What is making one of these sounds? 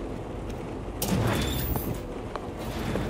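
A heavy sliding door whooshes open with a mechanical hiss.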